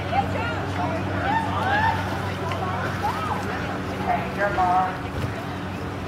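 People chatter and call out nearby, outdoors.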